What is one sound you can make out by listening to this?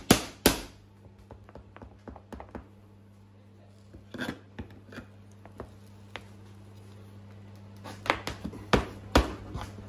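A hammer claw pries a nail out of wood with creaks and scrapes.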